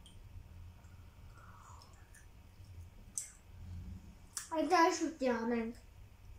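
A middle-aged woman sips a hot drink from a cup.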